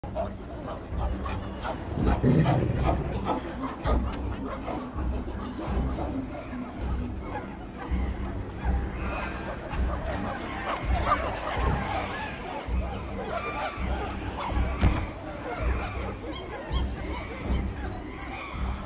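A crowd of apes grunts and hoots nearby.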